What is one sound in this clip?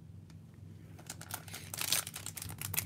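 A foil card pack crinkles and rustles as a hand handles it.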